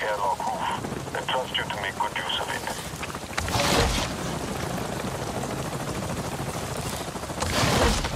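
A helicopter's rotor thuds overhead.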